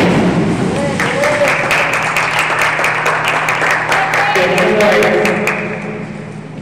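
A crowd claps and cheers in an echoing hall.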